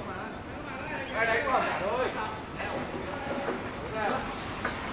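Men talk with each other at a distance outdoors.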